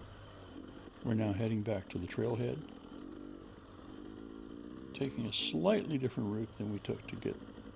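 A two-stroke dirt bike revs hard in short bursts.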